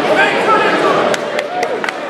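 Spectators clap as a winner is announced.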